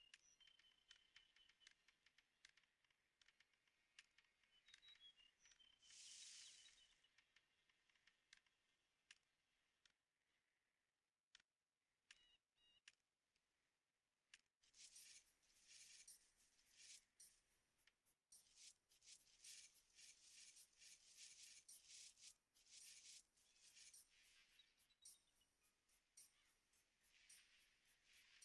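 Small tools tap and knock in quick, uneven strikes.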